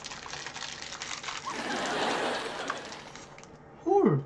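Plastic wrapping crinkles and tears.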